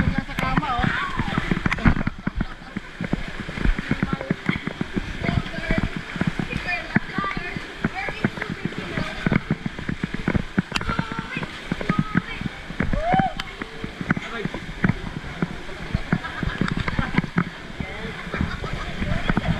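Young people shout and laugh excitedly.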